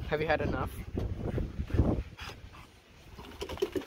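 A small dog snorts and snuffles.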